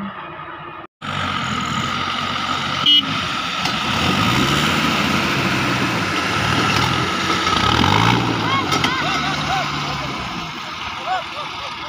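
Large tyres crunch over loose dirt and rocks.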